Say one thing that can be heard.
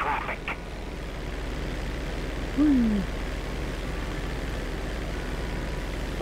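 A small propeller plane engine drones steadily.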